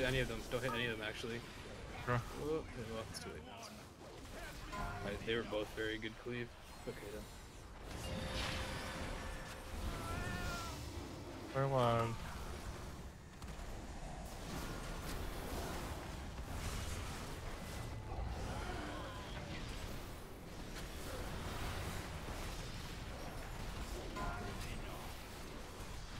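Spell effects crackle and boom during a fight in a game.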